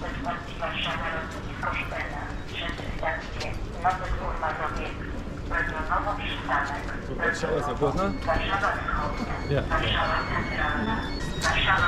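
Footsteps tap on a concrete platform.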